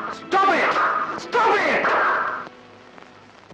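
A woman cries out loudly.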